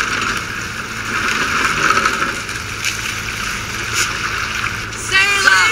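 Water splashes steadily against a boat's hull as oars row.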